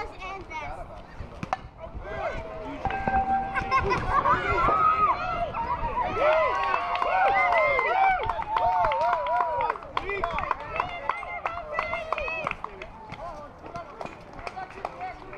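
Young boys shout and cheer excitedly nearby.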